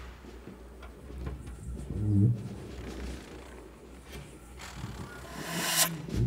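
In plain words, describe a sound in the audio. Two flutes play a melody together.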